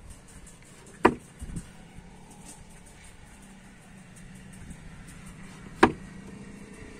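A wooden board is folded down and thumps into place.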